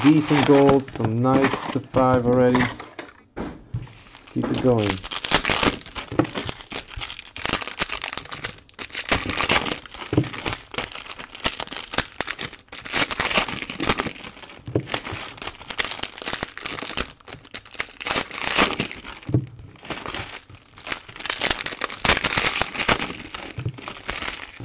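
Plastic card packs crinkle and rustle as hands tear them open.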